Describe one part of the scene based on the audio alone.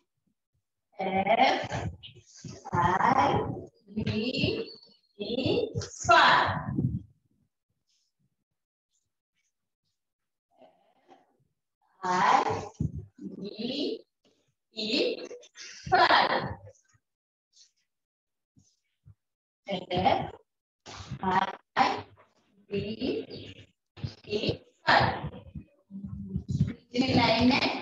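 A woman speaks clearly and slowly, as if teaching.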